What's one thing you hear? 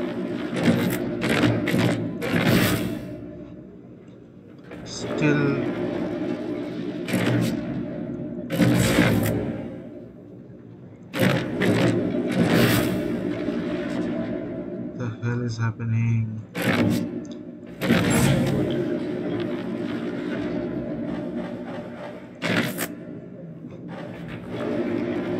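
A heavy metal mechanism clanks and grinds as it turns.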